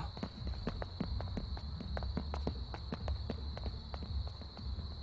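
Footsteps run quickly across hard pavement.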